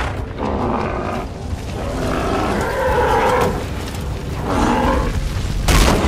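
A large beast growls and roars loudly.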